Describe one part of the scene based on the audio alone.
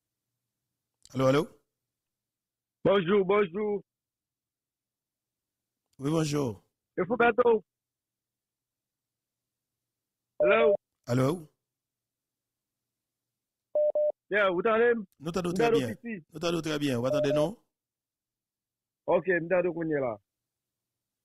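A man speaks calmly and closely into a microphone, in short bursts with pauses.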